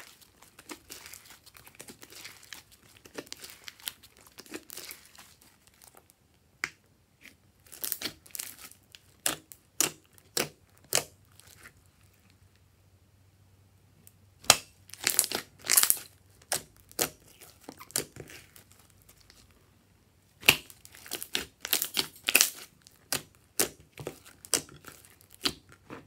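Sticky slime squishes, pops and crackles close up.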